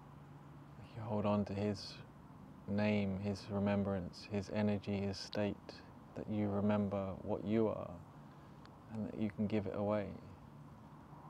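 A young man speaks calmly and close into a clip-on microphone, with pauses.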